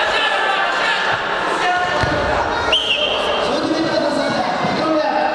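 A crowd of spectators chatters and calls out in an echoing hall.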